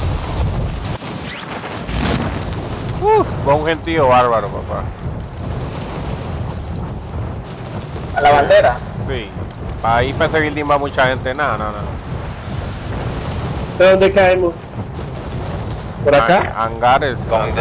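Wind rushes steadily past a falling skydiver.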